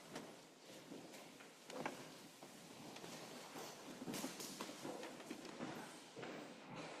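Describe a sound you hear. A crowd of people murmurs and chats quietly in a room.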